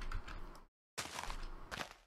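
A crunchy video game digging sound effect plays as dirt is dug.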